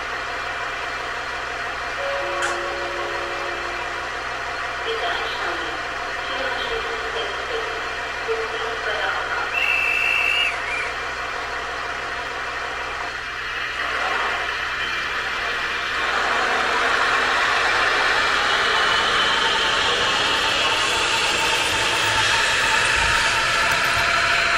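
A model train rumbles steadily along the track.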